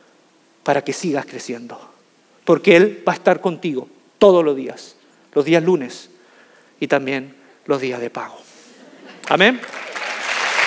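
A young man speaks with animation through a microphone in a large hall.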